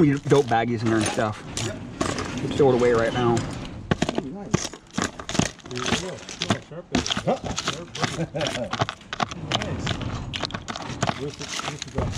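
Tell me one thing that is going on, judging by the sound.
Small plastic items rattle and clatter in a plastic box as a hand rummages through them.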